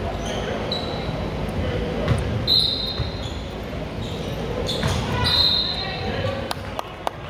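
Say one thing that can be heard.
A basketball thuds on the floor.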